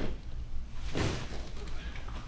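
A joint cracks with a short sharp pop.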